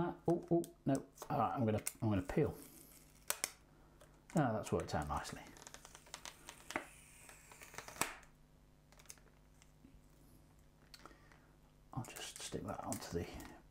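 Scissors snip through stiff plastic packaging.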